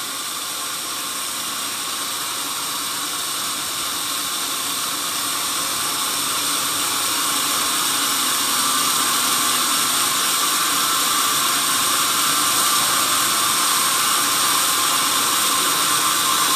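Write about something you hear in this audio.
A band saw cuts through a log with a steady high whine that slowly grows louder.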